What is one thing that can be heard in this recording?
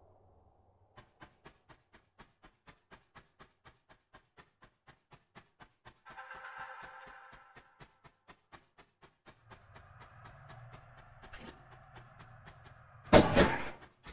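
Quick footsteps run steadily on stone.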